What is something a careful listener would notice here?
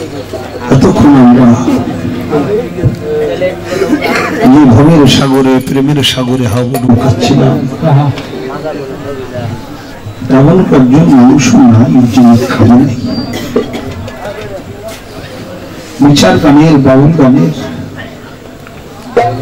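A man sings loudly into a microphone over loudspeakers outdoors.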